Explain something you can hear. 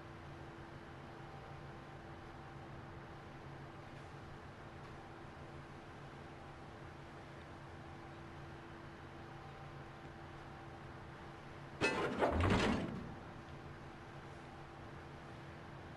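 A ship's engine hums steadily over the sea.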